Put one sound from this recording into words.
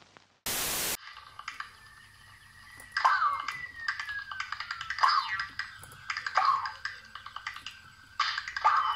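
Cheerful game music plays with jaunty melodic sounds.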